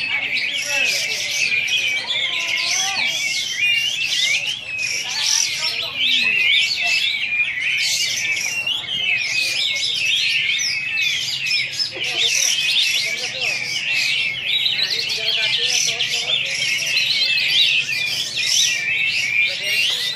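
A caged bird chirps and twitters rapidly and continuously, close by.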